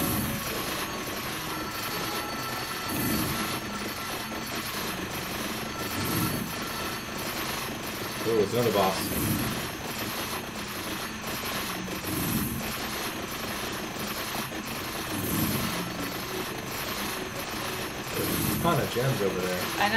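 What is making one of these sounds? Electronic sound effects chime and zap steadily.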